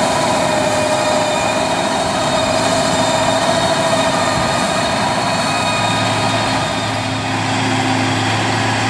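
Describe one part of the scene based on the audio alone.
A harrow rattles as it drags through the soil.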